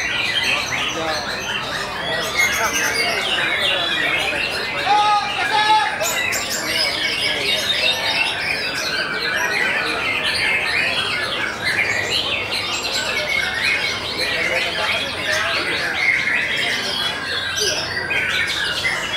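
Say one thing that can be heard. A songbird sings loud, rapid, warbling chirps and whistles.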